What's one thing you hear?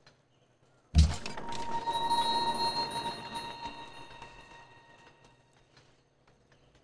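A bright game chime rings out and slowly fades.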